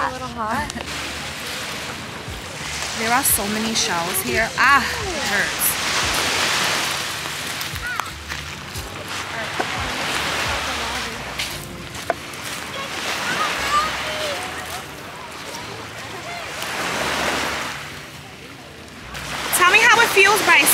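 Small waves wash gently onto the shore.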